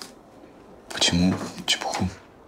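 A young man asks a short question quietly nearby.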